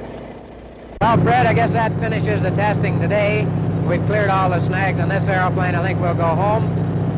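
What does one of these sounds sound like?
A man speaks loudly and with animation over the engine noise.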